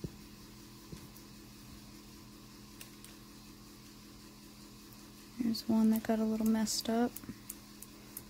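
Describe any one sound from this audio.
Fingers rub softly over paper.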